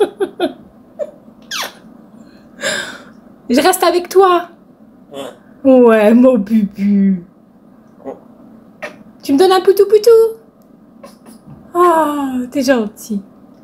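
A parrot whistles and chatters in bursts close by.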